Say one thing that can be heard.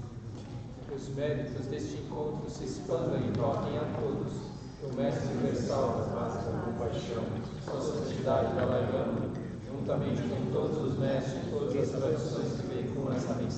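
Several men talk calmly nearby.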